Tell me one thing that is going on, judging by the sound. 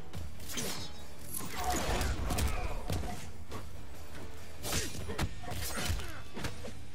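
Punches and kicks land with heavy, sharp thuds in a video game fight.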